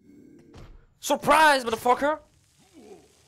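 A magic blade whooshes through the air in a spinning attack.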